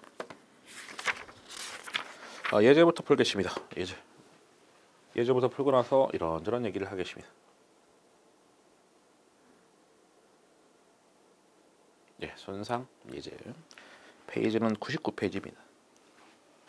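A man lectures calmly into a close microphone, in short bursts with pauses.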